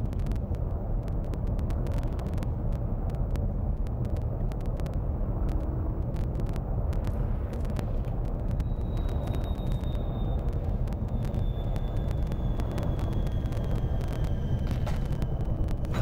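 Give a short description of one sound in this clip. A spaceship's engines rumble low and steadily.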